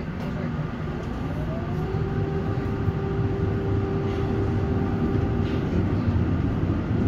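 A tram's motor whines, rising in pitch and then holding steady.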